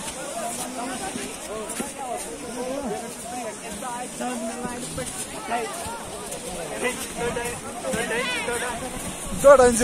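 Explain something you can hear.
Several men and women talk and call out nearby, outdoors.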